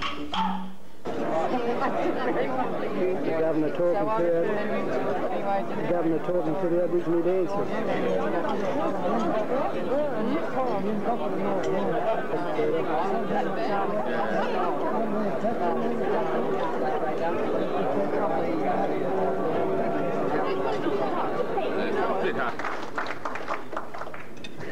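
A crowd of men and women chat and talk over each other nearby.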